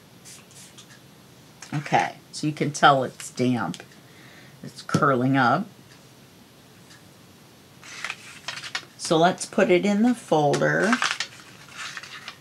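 Paper cards slide and tap on a hard surface.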